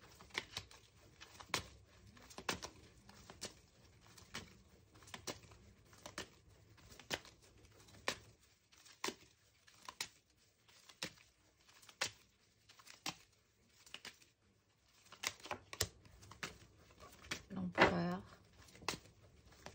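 Cards are shuffled with soft, regular clicks.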